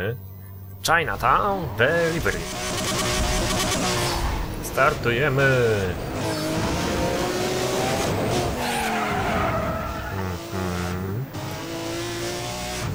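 A sports car engine revs and roars as the car speeds away.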